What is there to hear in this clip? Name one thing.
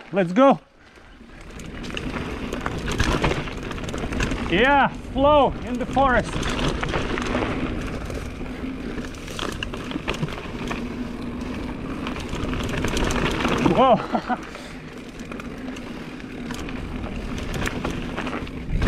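Bicycle tyres rumble and crunch over a dirt trail.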